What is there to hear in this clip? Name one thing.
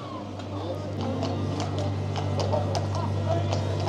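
Horse hooves clop on a wet road.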